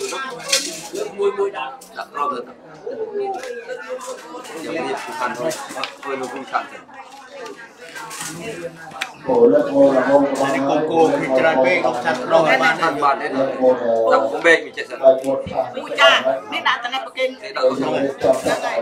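A group of people chatter in a room.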